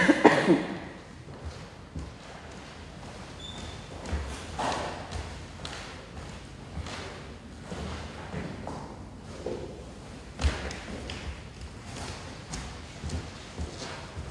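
Footsteps cross a wooden floor.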